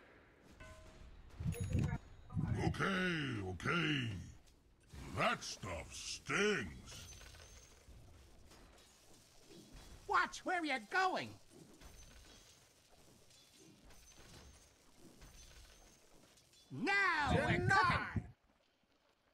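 Clashing weapons and crackling spell effects sound in a fast fight.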